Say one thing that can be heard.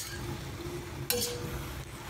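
A ladle of liquid pours into a hot pan with a loud hiss.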